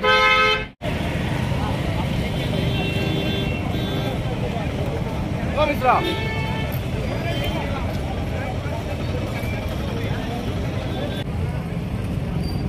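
Many boots tramp on a paved road as a group marches.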